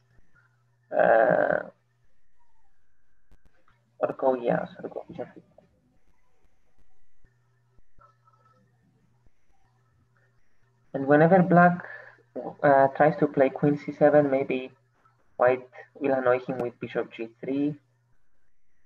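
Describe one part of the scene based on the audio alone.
A boy talks calmly through an online call microphone.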